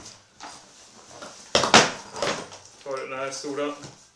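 A suitcase lid thumps open.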